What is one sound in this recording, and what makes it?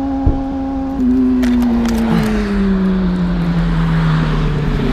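A body scrapes and tumbles across loose gravel.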